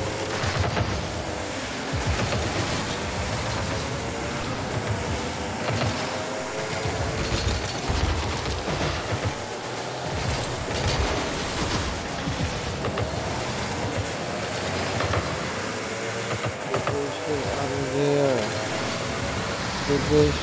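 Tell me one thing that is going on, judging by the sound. Car engines hum and roar in a video game.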